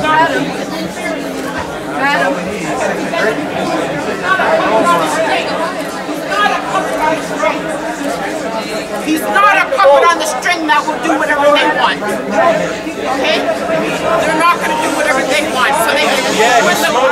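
A crowd of men and women talk over one another loudly, close by.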